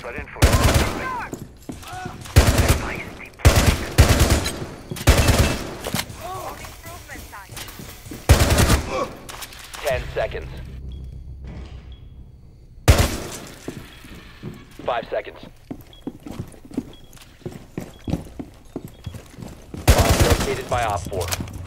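Bursts of rapid gunfire ring out loudly, again and again.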